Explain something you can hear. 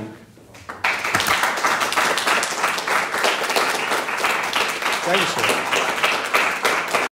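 A man speaks to an audience in a room.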